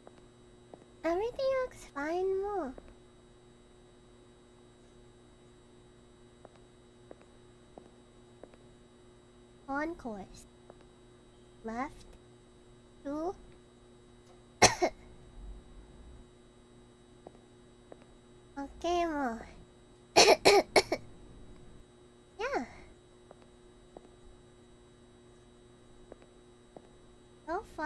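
A young woman talks with animation close to a microphone, in short bursts with pauses.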